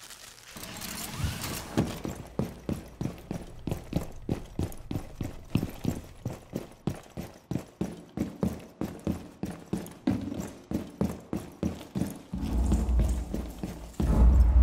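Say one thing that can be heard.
Footsteps run quickly and steadily across a hard floor.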